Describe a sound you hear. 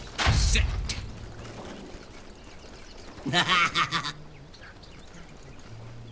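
Small creatures clash in combat with quick hits.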